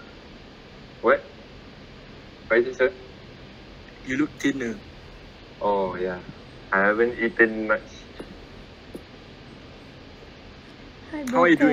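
A young man speaks in short, halting phrases over an online call.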